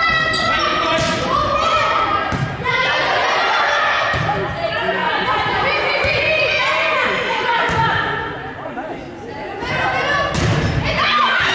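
A volleyball is smacked hard several times.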